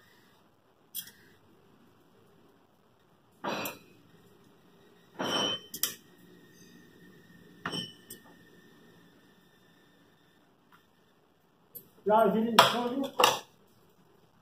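Metal tongs clink against a plastic dish.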